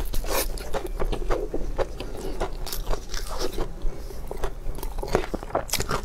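A young woman chews food loudly and wetly, close to a microphone.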